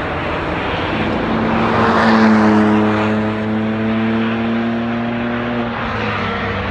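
A car engine drones at a steady high pitch and then cuts away.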